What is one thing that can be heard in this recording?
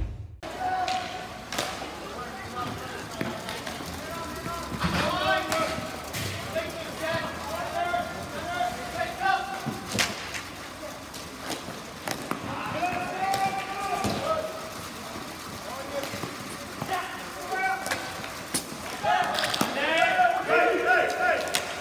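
Inline skate wheels rumble over a hard floor.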